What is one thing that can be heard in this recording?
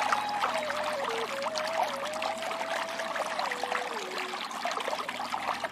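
A mountain stream rushes and splashes loudly over rocks.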